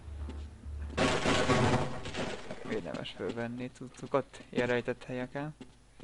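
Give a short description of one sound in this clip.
A crowbar smashes a wooden crate with sharp cracks.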